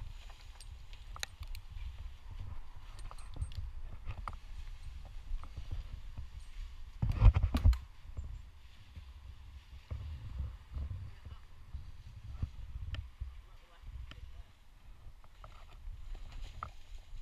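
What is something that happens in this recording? Branches rustle and scrape against a climber close by.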